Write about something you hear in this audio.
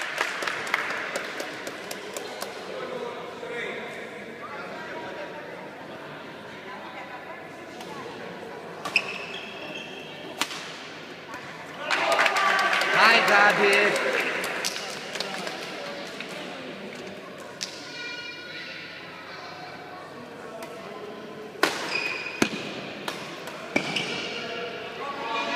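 A crowd of onlookers murmurs and cheers in an echoing hall.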